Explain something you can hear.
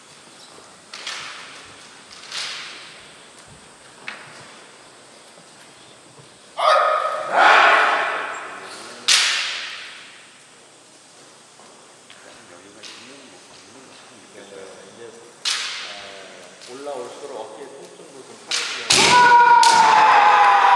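Bamboo swords clack sharply together in an echoing hall.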